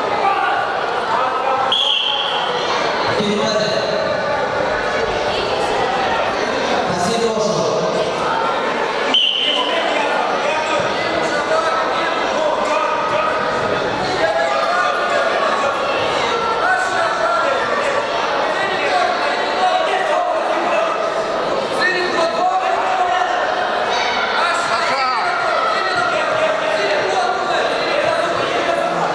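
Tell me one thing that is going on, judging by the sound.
A crowd of spectators chatters, shouts and cheers in a large echoing hall.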